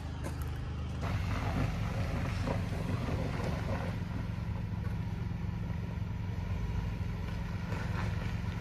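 A pickup truck engine idles outdoors.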